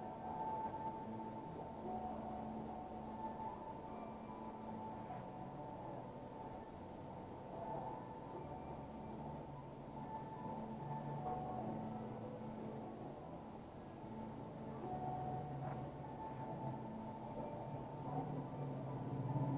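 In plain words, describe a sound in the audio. A straight razor scrapes softly against short hair and skin.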